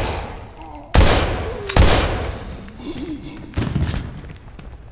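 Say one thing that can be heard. A gun fires loud shots that echo.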